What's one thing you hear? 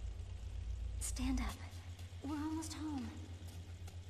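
A young woman speaks gently, close by.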